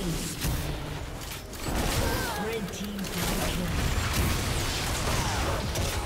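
Magic blasts and sword hits clash rapidly in a game battle.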